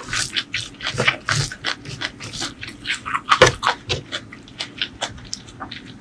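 Crisp noodles crackle and rustle under a hand.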